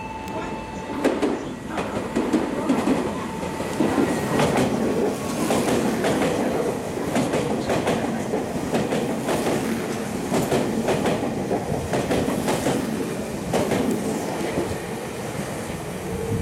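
Train wheels clatter and squeal over the rails as the train passes close by.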